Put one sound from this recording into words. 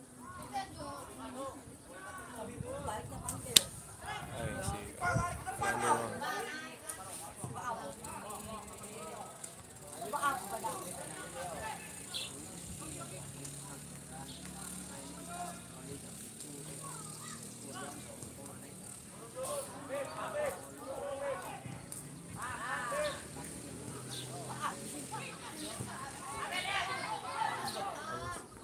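Football players shout to each other across an open field in the distance.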